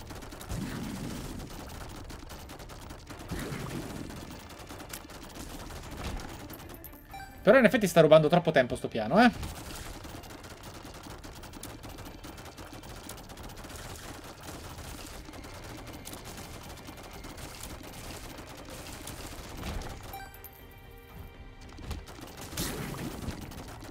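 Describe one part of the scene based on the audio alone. Rapid shooting and splattering sound effects play throughout.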